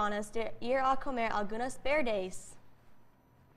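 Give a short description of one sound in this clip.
A young woman reads aloud clearly into a close microphone.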